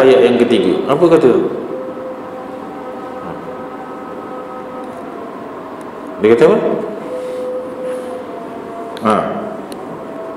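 A man speaks calmly into a microphone over a loudspeaker in an echoing hall, pausing between phrases.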